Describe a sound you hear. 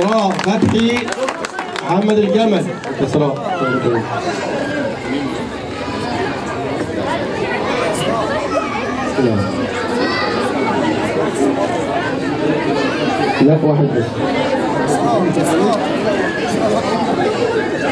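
A crowd of men and women chatter and call out all around.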